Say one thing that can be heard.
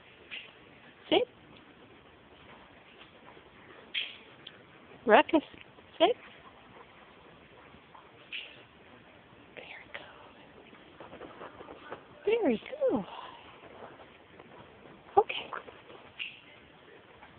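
Dogs whine and yelp in short, high cries.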